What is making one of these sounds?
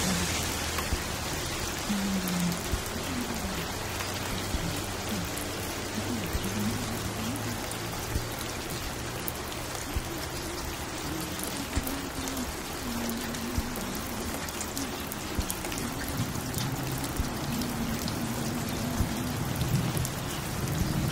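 Soft music plays from a record player.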